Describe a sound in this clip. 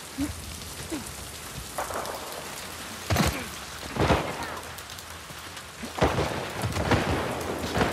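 Footsteps tread softly on wet pavement.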